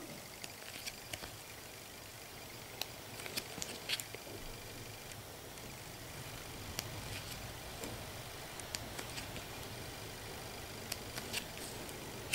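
Paper pages of a small booklet rustle and flip softly.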